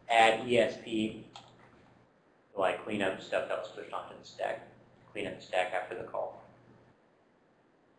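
A man speaks with animation through a microphone, in a room with some echo.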